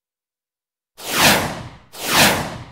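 A pair of swift whooshes sweep past, one after the other.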